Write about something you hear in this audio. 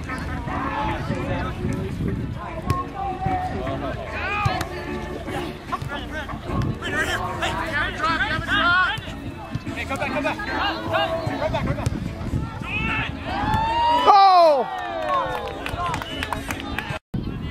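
Women and men on the sideline shout and cheer with excitement outdoors.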